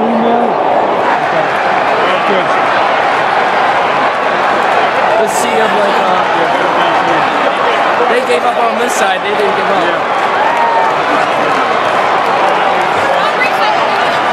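A large stadium crowd roars and chants loudly all around.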